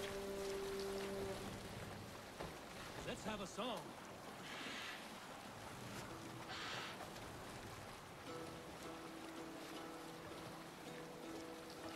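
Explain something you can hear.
Oars and water wash along a boat's hull.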